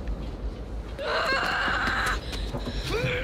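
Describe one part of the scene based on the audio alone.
A man shouts with strain.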